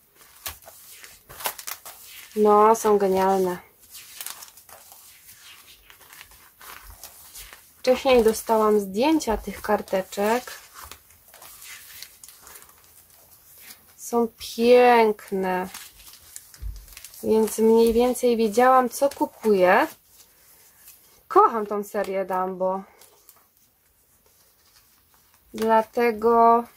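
Plastic album pages rustle and crinkle as they are turned.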